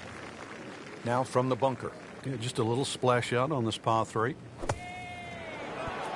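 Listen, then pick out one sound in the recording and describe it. A golf club strikes sand with a soft thud.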